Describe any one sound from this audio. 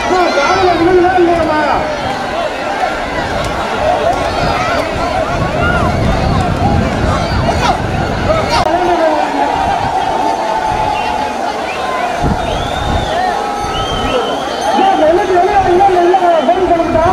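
A large crowd of men and women shouts and chatters outdoors.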